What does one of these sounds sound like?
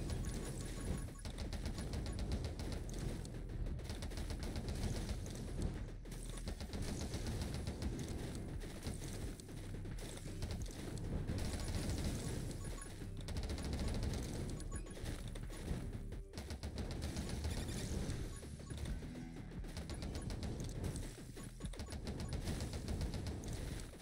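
Rapid game gunfire crackles in quick bursts.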